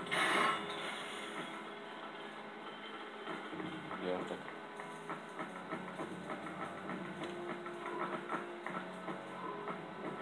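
Music plays through a television loudspeaker.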